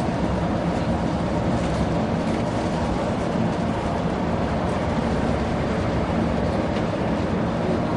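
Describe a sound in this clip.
Passing traffic whooshes by.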